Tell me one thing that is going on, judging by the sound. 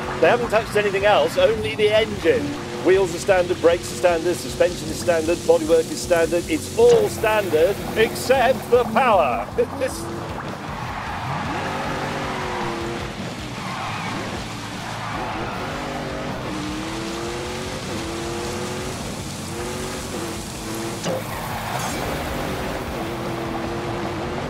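A car engine roars and revs as it races.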